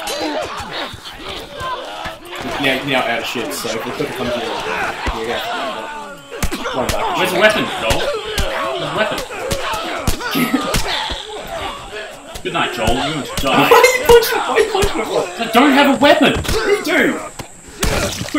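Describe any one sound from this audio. Punches thud in a fistfight.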